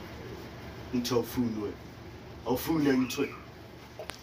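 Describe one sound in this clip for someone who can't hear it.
A man speaks quietly and tensely nearby.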